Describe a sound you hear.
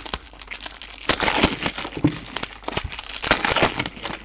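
A foil wrapper crackles and tears as it is ripped open.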